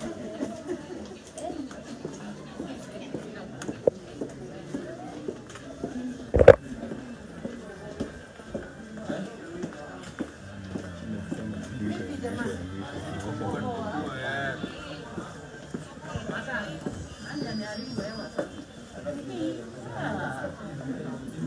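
Several people talk nearby.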